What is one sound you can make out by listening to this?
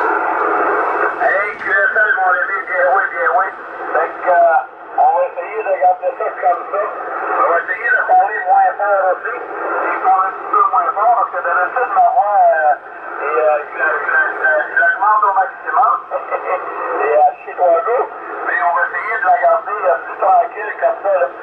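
Static hisses from a radio receiver.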